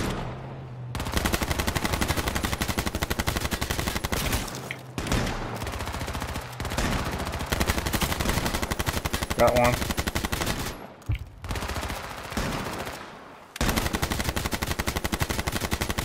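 Rapid automatic gunfire rattles close by.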